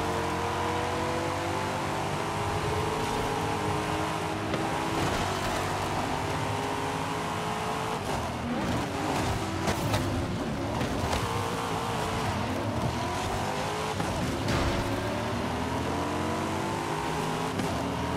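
A sports car engine roars at high revs, shifting gears as it accelerates.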